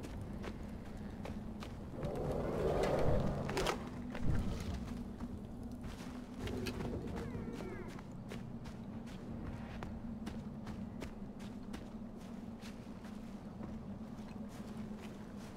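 Footsteps crunch and rustle through dry grass.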